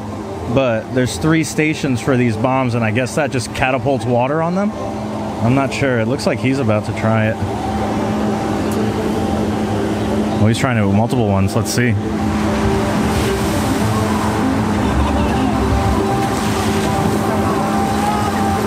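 Water flows and churns steadily.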